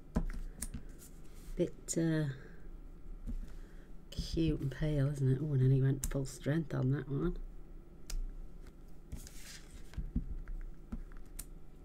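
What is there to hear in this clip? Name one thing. Paper rustles and slides on a table.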